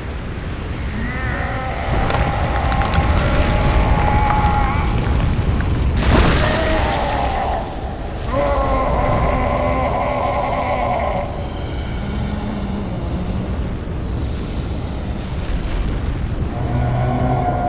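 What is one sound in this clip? A huge creature groans and roars in pain.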